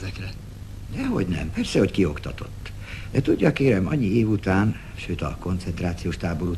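An elderly man talks with animation up close.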